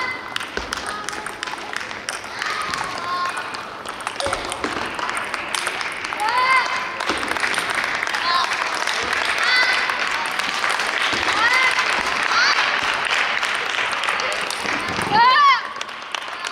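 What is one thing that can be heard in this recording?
A table tennis ball clicks back and forth between paddles and the table in a large echoing hall.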